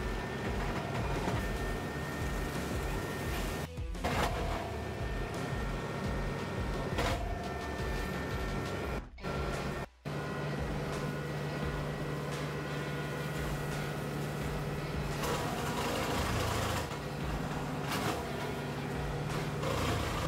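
A tractor engine runs steadily.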